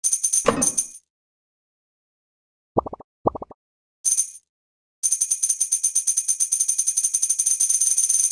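Bright chiming blips ring out in quick runs as coins are collected.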